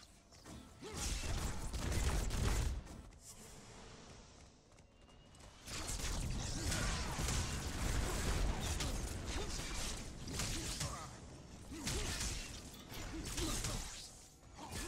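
Magic blasts whoosh and crackle in loud bursts.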